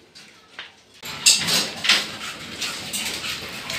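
A hose nozzle clanks against a metal railing.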